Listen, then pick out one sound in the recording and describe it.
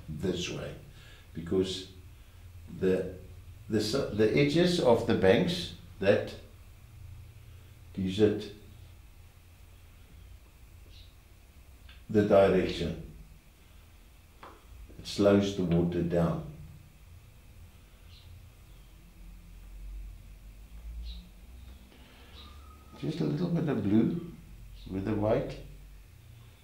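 An elderly man talks calmly and close by, in short bursts with pauses.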